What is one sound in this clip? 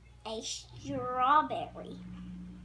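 A young girl speaks in a high voice close by.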